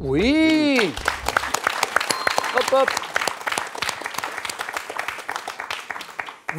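People clap their hands.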